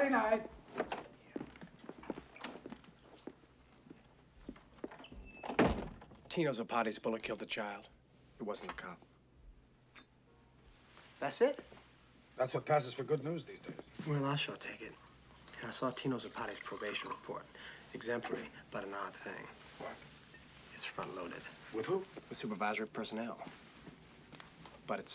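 A middle-aged man speaks calmly and quietly nearby.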